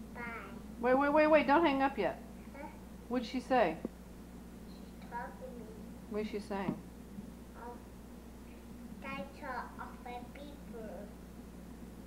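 A toddler talks softly and haltingly close by.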